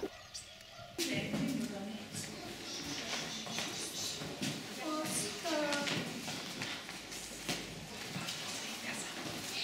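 Children chatter quietly in an echoing room.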